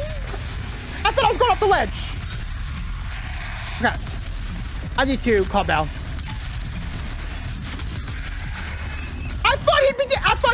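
A young man speaks excitedly and shouts into a close microphone.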